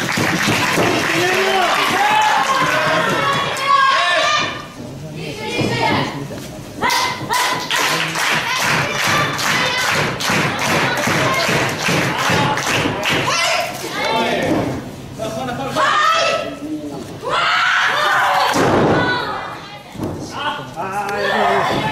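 A young woman yells loudly in an echoing hall.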